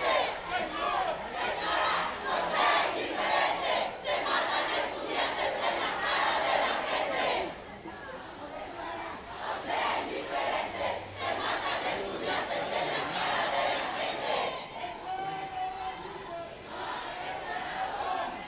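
A crowd of marchers chants and shouts loudly outdoors.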